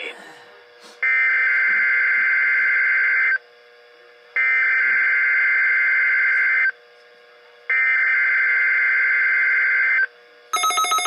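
An electronic tone beeps three times in long, steady blasts.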